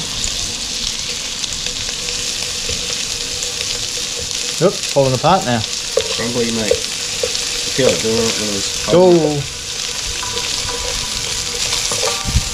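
Metal tongs scrape and tap against a frying pan.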